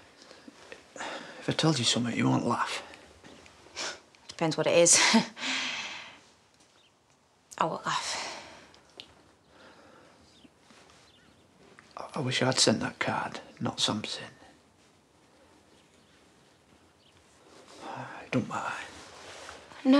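A man speaks tensely and pleadingly, close by.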